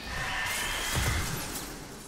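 A gun fires with a loud blast.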